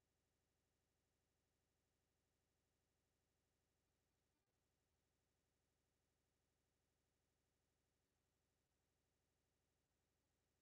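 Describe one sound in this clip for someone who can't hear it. A wall clock ticks steadily.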